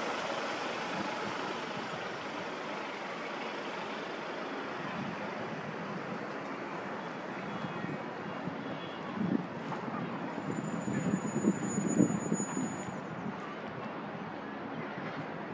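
Wind blows steadily outdoors, gusting louder now and then.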